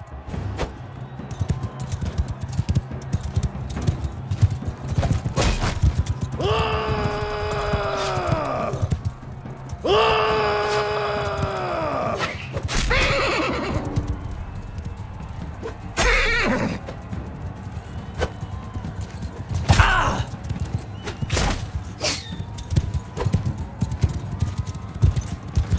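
Horse hooves thud rapidly on sand.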